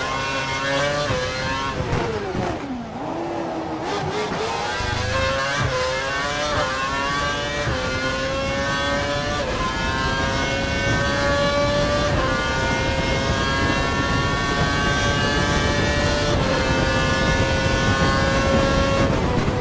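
A racing car engine whines loudly, dropping in pitch as the car brakes into a corner, then climbing through the gears with brief dips at each gear change.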